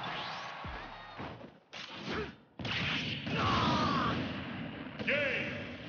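Video game fighters clash with hits and explosive bursts.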